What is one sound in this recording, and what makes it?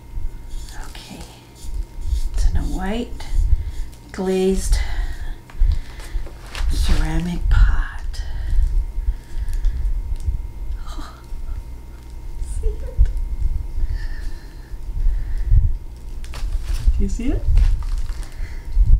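A middle-aged woman talks calmly close to a microphone.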